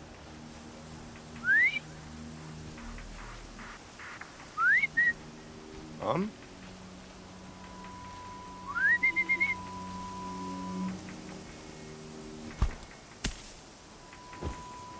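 Tall grass rustles as someone creeps through it.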